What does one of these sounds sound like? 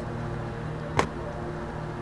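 A bag thuds onto the road.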